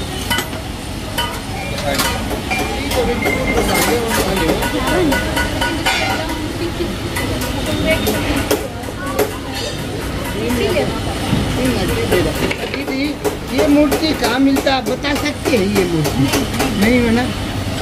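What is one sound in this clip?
Small metal objects clink together.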